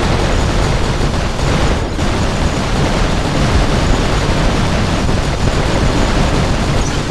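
Heavy gunfire and explosions boom continuously.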